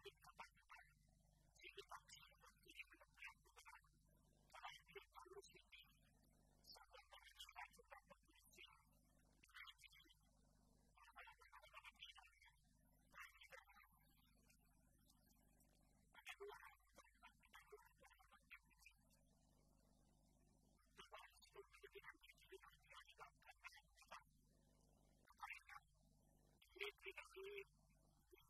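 An elderly man reads out a speech steadily through a microphone, with short pauses.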